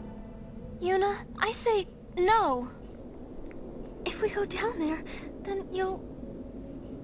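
A young woman speaks with animation and worry.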